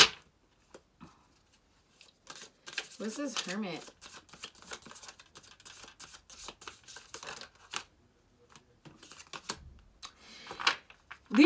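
Playing cards riffle and shuffle softly.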